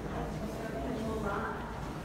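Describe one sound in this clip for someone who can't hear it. Footsteps tread across a wooden floor.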